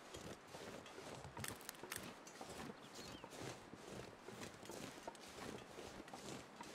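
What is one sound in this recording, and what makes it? Footsteps crunch steadily over snow and ice.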